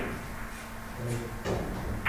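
A cue tip is rubbed with chalk in a few short scrapes.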